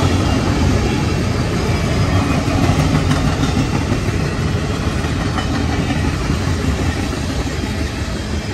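Steel wheels click over rail joints.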